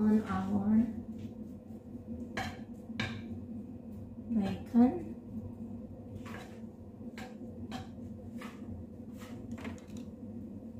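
A wooden spatula scrapes and taps against a frying pan.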